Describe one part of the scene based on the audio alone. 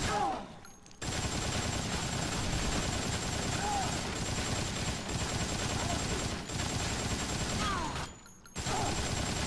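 A gun fires rapidly in loud bursts.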